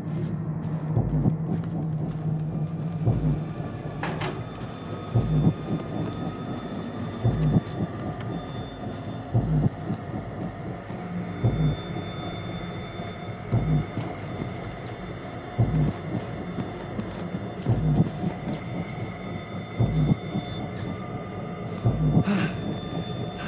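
Slow footsteps thud on a hard floor at a steady pace.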